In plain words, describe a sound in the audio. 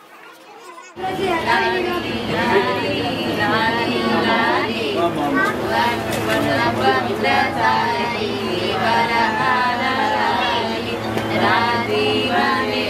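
A group of women sing together loudly.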